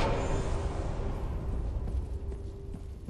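A warm burst of fire flares up and fades.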